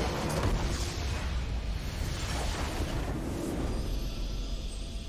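A large explosion booms and rumbles, then slowly fades.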